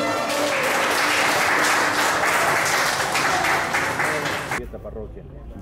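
A crowd of people chatters loudly in a room.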